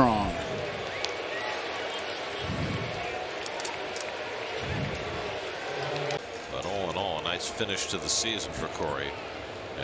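A large stadium crowd murmurs and cheers in the open air.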